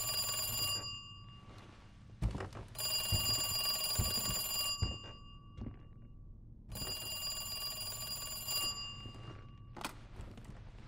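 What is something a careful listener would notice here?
An old telephone rings loudly in bursts.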